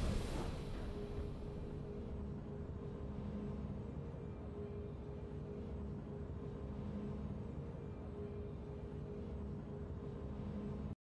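Triumphant game music plays steadily.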